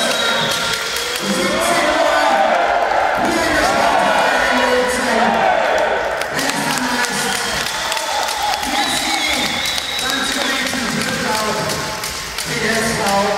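Men shout and cheer loudly in a large echoing hall.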